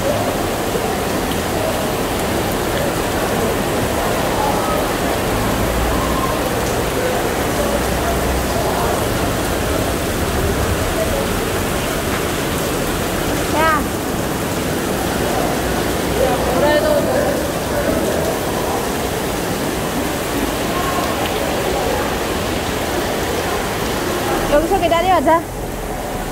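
Heavy rain pours down and drums on a plastic canopy overhead.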